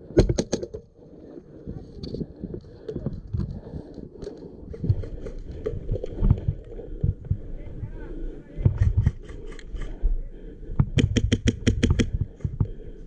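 A paintball marker fires rapid bursts of shots close by.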